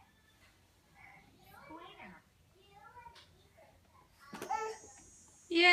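A toddler babbles nearby.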